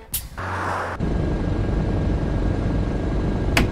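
A bus engine hums steadily and picks up speed.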